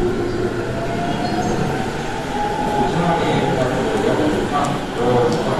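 Train wheels squeal and screech on the rails.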